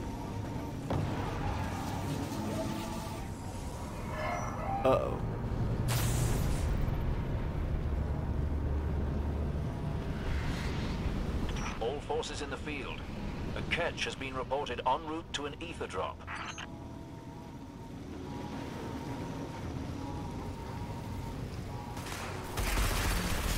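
A hover bike hums as it glides along.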